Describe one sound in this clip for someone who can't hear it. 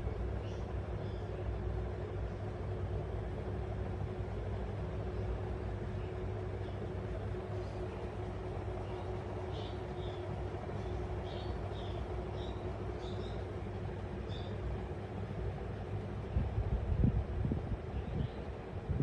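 A small parrot chirps softly in short high calls.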